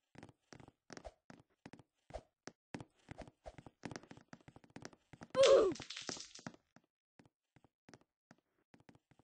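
Blows thud and smack in a video game brawl.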